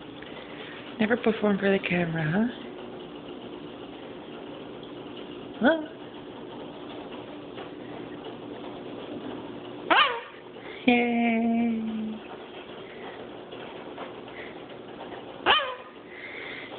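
A cockatoo squawks and chatters in short loud bursts close by.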